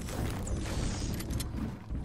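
A pickaxe chops against wood.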